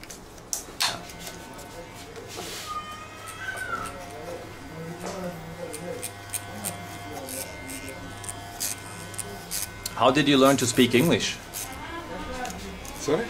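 An electric hair clipper buzzes close by.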